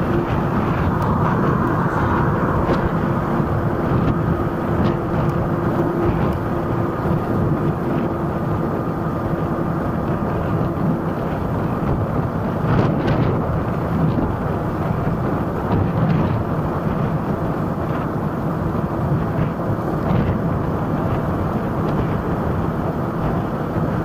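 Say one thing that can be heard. Traffic passes on a road.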